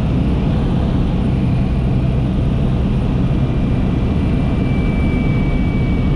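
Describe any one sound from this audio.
A small propeller plane's engine drones loudly and steadily from inside the cabin.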